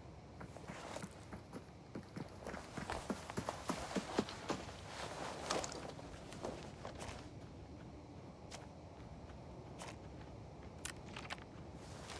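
Gear rustles and clicks softly as a bag is searched through.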